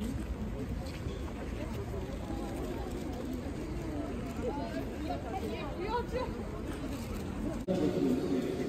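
A crowd of men and women chat and murmur nearby outdoors.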